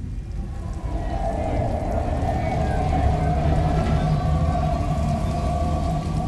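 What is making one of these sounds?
An elevated train hums and rumbles past.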